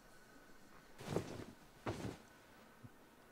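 A person drops heavily onto a bed with a soft thump.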